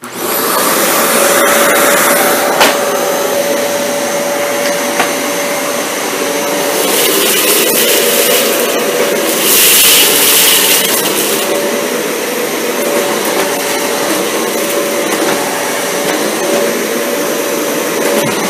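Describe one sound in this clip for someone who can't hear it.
A vacuum cleaner motor whirs steadily with a loud hiss of suction.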